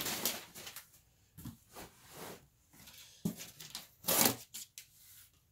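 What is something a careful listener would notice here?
A cardboard box flap scrapes and thumps.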